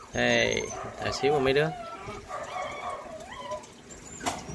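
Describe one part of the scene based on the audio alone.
Small animals squeak and chirp up close.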